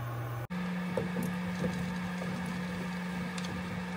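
Potato chunks thud and clatter into a pan.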